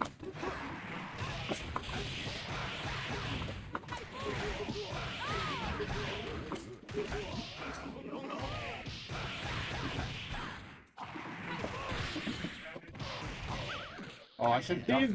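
Game characters shout and grunt during the fight.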